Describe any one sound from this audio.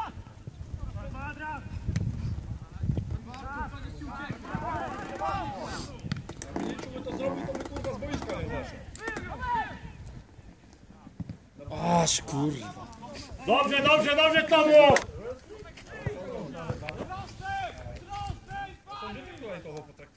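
Players shout to each other across an open outdoor field.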